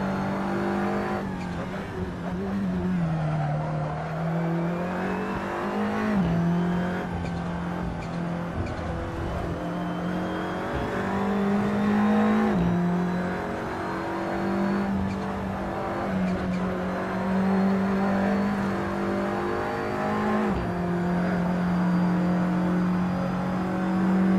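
A racing car engine roars steadily, dropping in pitch with each gear change.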